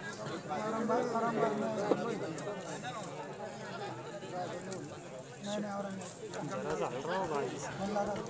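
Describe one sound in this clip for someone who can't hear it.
A crowd of men shouts and cheers excitedly outdoors.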